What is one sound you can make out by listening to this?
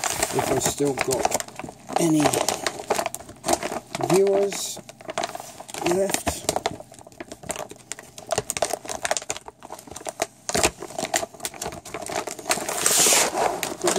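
A plastic bag rustles and crinkles close by.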